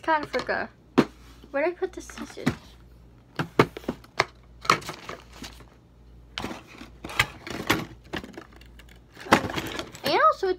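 Paper cards rustle and tap as they are handled.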